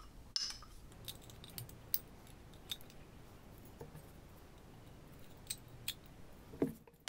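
A jar lid twists and clicks open.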